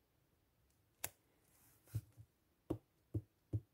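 Plastic stamps clack and tap on a hard mat.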